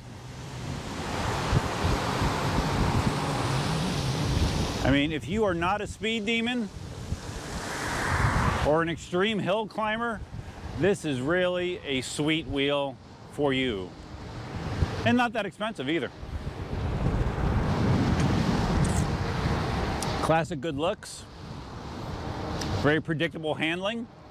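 Wind rushes loudly outdoors.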